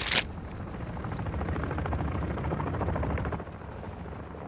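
A helicopter rumbles overhead.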